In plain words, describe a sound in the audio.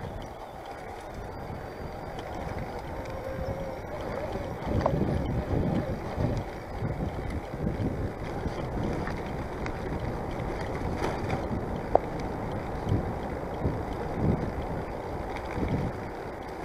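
Bicycle tyres roll over a paved path.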